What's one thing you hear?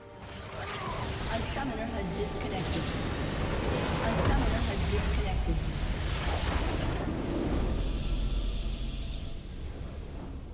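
Game explosions and crashing effects rumble loudly.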